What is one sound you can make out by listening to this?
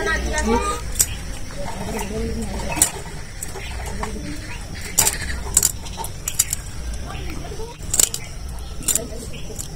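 A fish's scales scrape and rasp against a metal blade.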